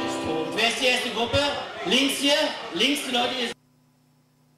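A man sings into a microphone.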